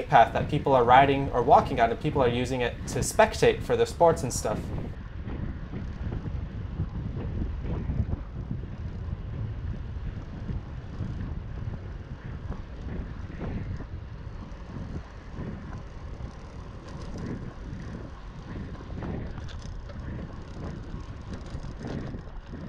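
Bicycle tyres hum on a paved path.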